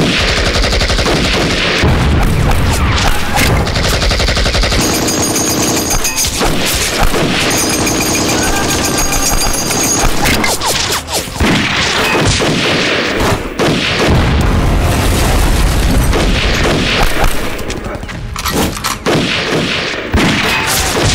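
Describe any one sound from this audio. Rifles fire in rapid, overlapping shots.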